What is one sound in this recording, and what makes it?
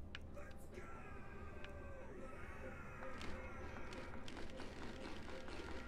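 Soft game menu clicks tick.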